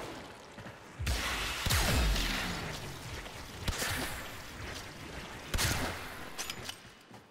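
Electricity crackles and zaps in sharp bursts.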